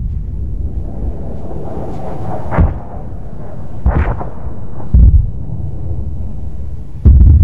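Rocket motors roar as missiles streak through the air.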